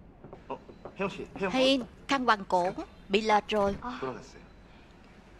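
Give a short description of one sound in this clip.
A man and a woman talk close by, the woman exclaiming in surprise.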